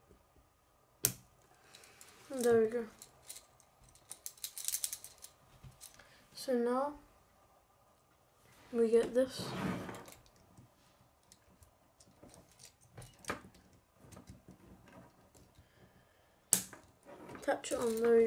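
Plastic toy pieces click and rattle as they are handled.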